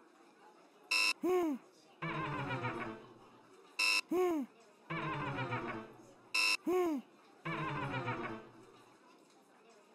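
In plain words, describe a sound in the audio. An electronic game buzzer sounds a quick wrong-answer jingle several times.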